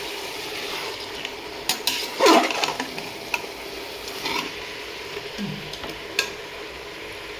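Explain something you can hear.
A metal spoon scrapes and clinks against a steel pot.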